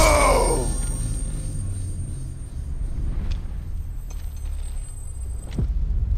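Metal blades clash in a fight.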